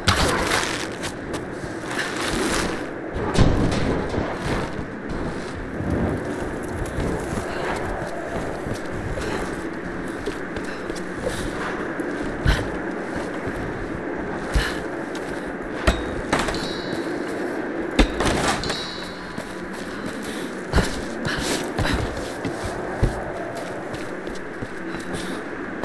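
Footsteps thud on wood and stone as a woman runs.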